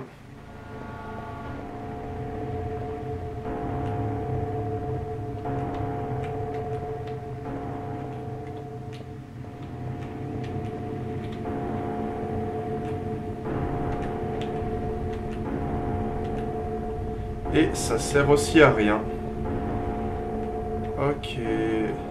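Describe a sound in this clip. A low, eerie drone hums steadily with a slowly pulsing tone.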